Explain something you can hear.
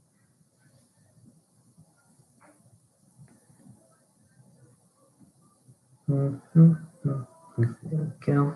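A craft knife scrapes softly across card.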